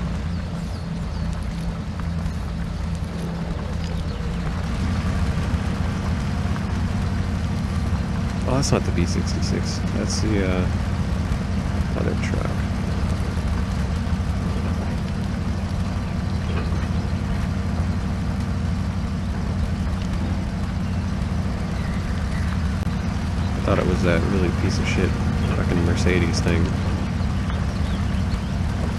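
A heavy truck engine rumbles and strains steadily.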